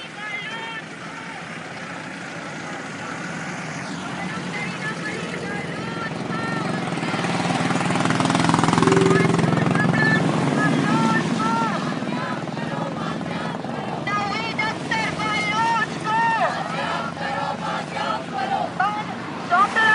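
A crowd of men chants and sings loudly outdoors.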